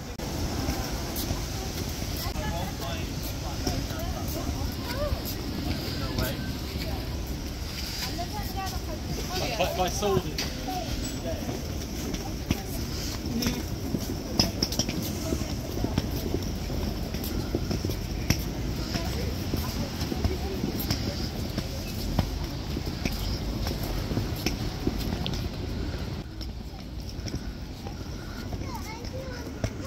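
Voices of a crowd chatter nearby outdoors.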